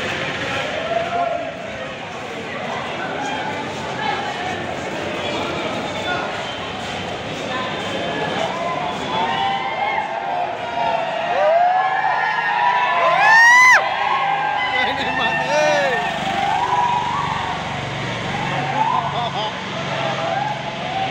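A large crowd of young men chatters and calls out nearby.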